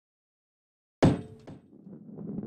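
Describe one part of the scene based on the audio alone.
A heavy ball lands with a sharp thud.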